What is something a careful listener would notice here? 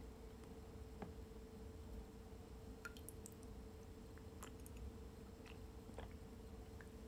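A metal spoon clinks and scrapes against a dish.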